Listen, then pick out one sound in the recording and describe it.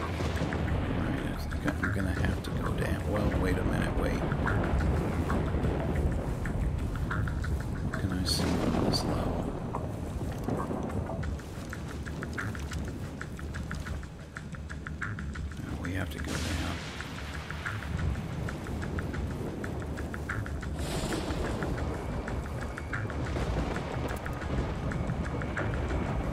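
Footsteps clank softly on metal grating.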